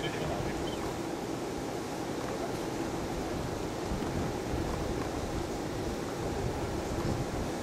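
Shoes scuff and slide on a clay court.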